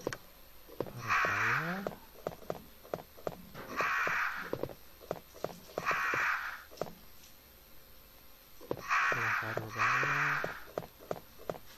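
Crows caw harshly, again and again.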